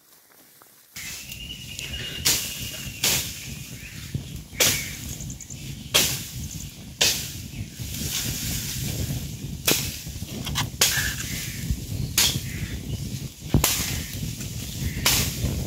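A fire of dry leaves and twigs crackles and pops.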